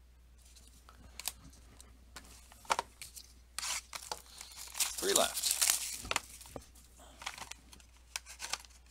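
Trading cards rustle and flick as a hand shuffles through a stack.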